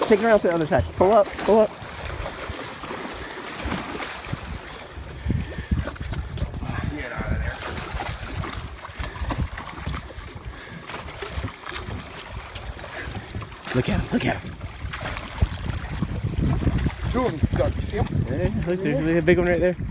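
Water splashes against the side of a boat.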